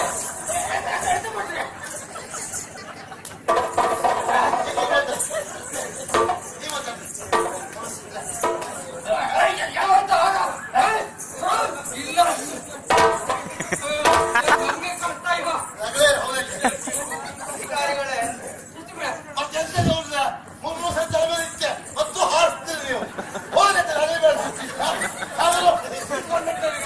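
Men speak loudly and with animation through a microphone and loudspeakers.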